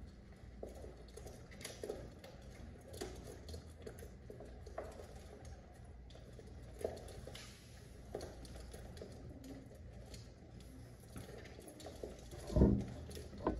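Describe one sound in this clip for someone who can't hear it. Pigeon beaks tap and peck on a window ledge.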